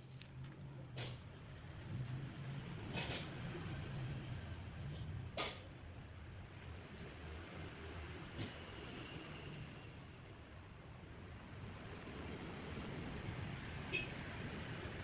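Hands tap and scrape against a rough rock, with a few sharp knocks.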